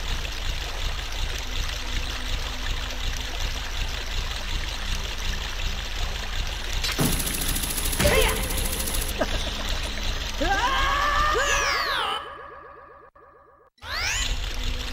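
Game music plays with a steady pulsing beat.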